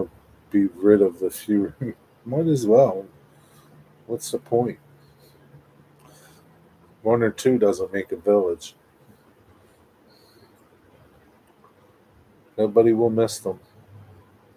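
A middle-aged man speaks calmly and close to the microphone, in short bursts with pauses.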